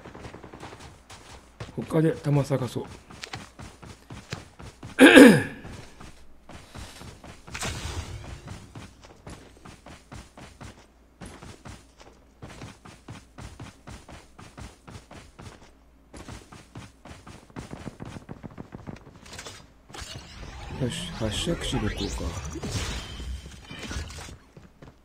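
Footsteps thud quickly and steadily over grass.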